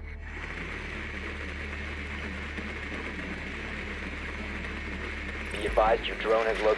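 A small motor hums steadily as a drone rolls along.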